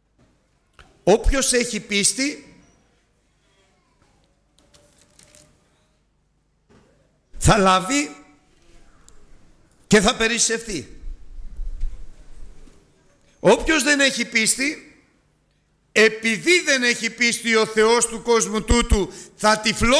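An elderly man speaks with animation into a microphone, in bursts with pauses.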